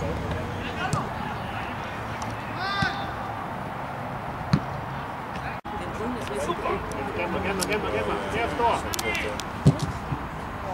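A football is kicked hard with a dull thud.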